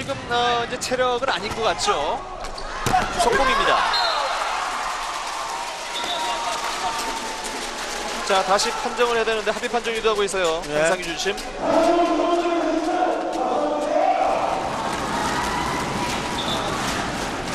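A volleyball is struck hard during a rally.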